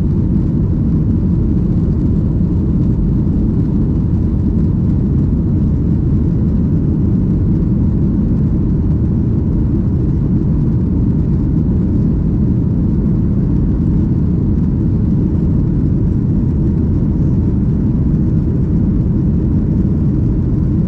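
Jet engines roar steadily with a deep, constant rumble inside an airliner cabin.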